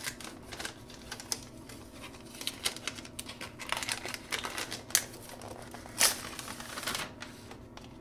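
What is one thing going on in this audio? Paper wrapping crinkles and tears as it is pulled open.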